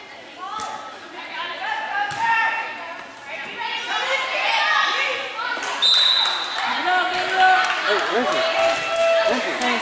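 Young girls shout and cheer in a large echoing gym.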